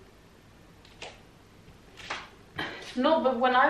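Hands and feet thump softly on a mat.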